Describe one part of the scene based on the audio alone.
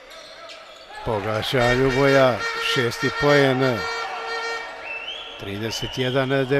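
A crowd cheers and chants in a large echoing hall.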